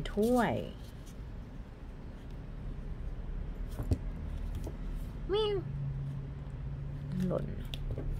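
Playing cards riffle and flick as they are shuffled by hand.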